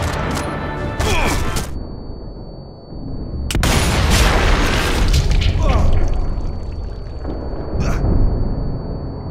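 A rifle fires loud, sharp shots that echo and rumble away.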